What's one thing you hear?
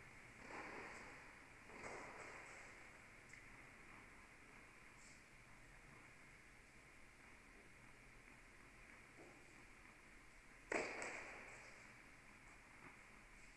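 Tennis balls are struck with pops that echo through a large hall.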